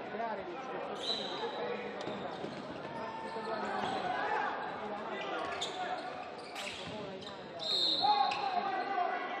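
Sneakers squeak sharply on a hard floor in an echoing hall.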